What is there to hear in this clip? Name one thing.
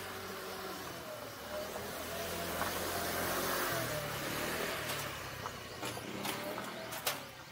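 A scooter engine hums as it passes nearby.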